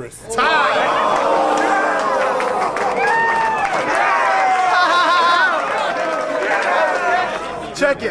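A crowd of young men shouts and cheers loudly in a noisy room.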